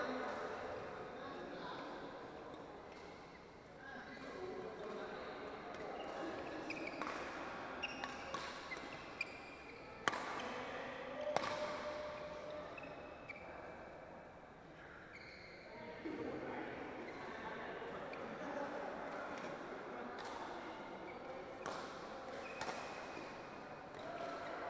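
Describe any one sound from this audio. Rackets strike a shuttlecock back and forth with sharp pops in a large echoing hall.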